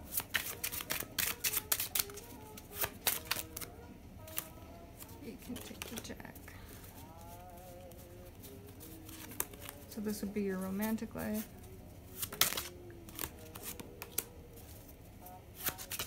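A playing card is laid down on a table with a soft tap.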